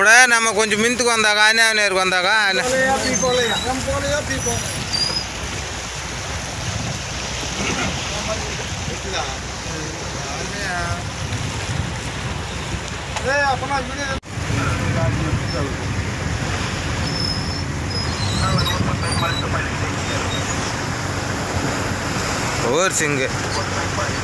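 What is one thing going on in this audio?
Waves slosh and churn around a boat.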